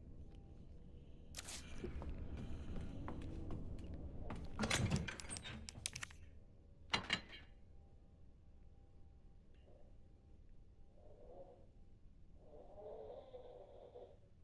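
Menu selections click sharply.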